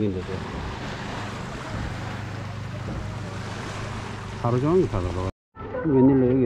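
Small waves lap on a rocky shore outdoors.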